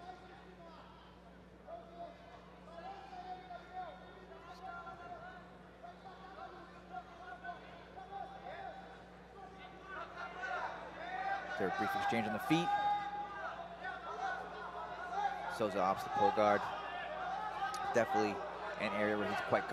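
A crowd in a large echoing hall shouts and cheers, growing louder.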